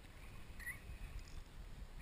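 A fishing reel clicks as a hand handles it.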